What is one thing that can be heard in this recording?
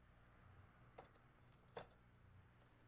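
Glass clinks sharply a few times.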